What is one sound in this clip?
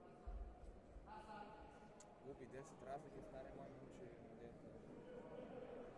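Spectators shout encouragement in an echoing sports hall.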